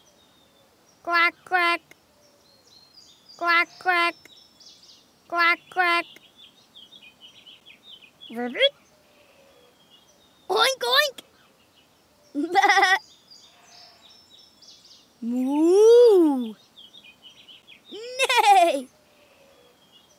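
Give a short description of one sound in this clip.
Cartoon farm animals call out in short, high, bright bursts, one after another.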